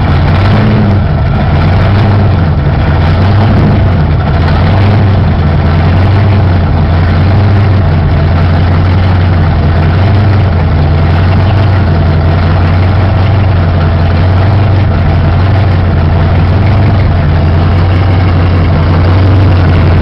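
A big car engine idles loudly with a deep, lumpy rumble close by.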